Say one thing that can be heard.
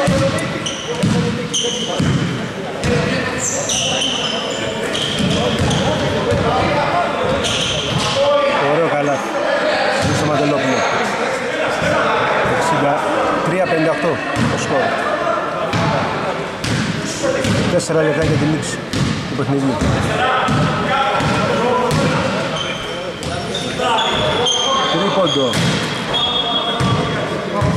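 Men call out to each other across a large echoing hall.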